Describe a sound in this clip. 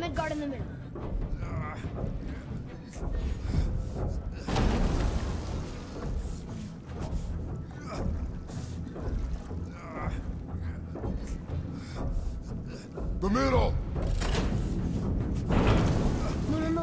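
Water laps and splashes against a moving boat.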